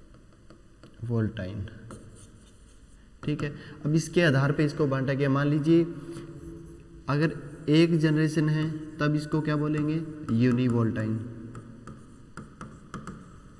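A young man speaks calmly and clearly, close by.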